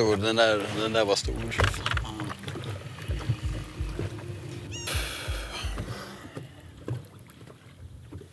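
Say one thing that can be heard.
Water laps and slaps against a boat's hull.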